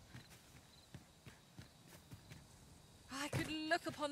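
Footsteps crunch slowly on rocky ground.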